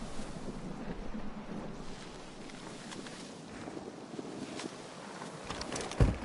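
Leaves rustle as someone pushes through plants.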